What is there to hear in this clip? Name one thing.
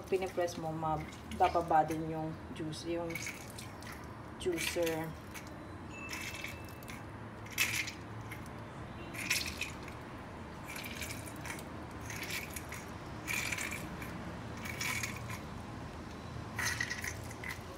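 Shrimp shells crackle and snap as hands peel them.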